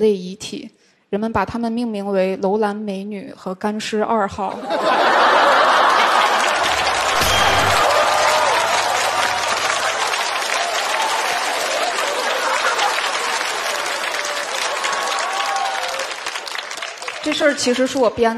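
A young woman speaks through a microphone with comic timing.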